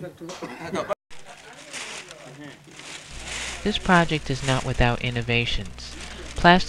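A plastic sheet rustles and crackles as it is spread out.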